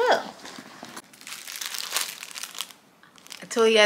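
Plastic packaging crinkles in a young woman's hands.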